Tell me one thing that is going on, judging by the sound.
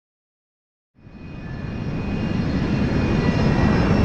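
Jet engines roar loudly as an airliner flies close by, growing louder.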